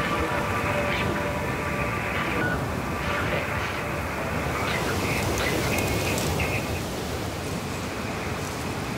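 Wind rustles through tree leaves outdoors.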